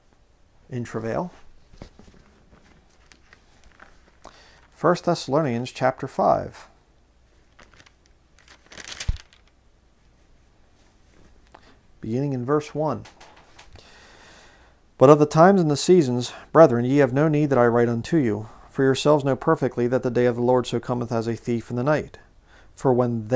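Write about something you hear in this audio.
A man speaks calmly and closely into a microphone, pausing now and then.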